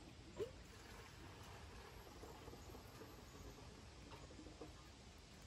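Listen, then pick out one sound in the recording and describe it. Fuel gurgles as it pours from a can.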